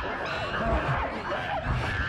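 A man shouts in alarm.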